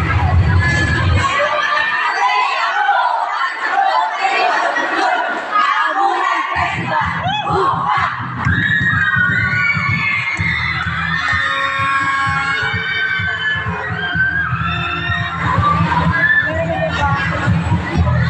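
A large crowd of spectators chatters in an echoing hall.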